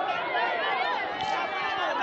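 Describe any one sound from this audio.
A woman shouts joyfully nearby.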